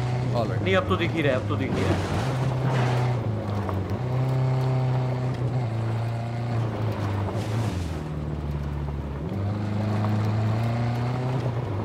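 An off-road vehicle's engine hums steadily and rises and falls as it drives.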